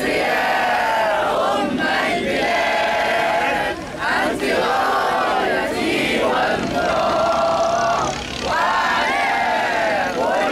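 A crowd of men and women chants loudly together outdoors.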